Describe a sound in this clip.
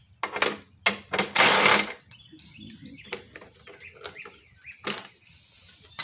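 A cordless drill whirs as it drives out screws.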